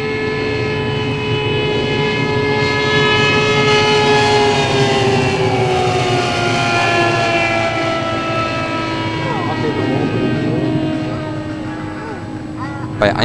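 A small propeller plane's engine drones overhead, its pitch sliding lower as it passes by.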